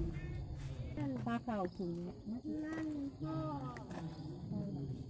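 A woman talks nearby, outdoors.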